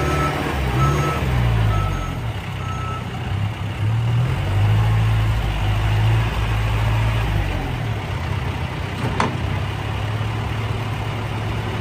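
A four-cylinder diesel backhoe loader drives and rumbles.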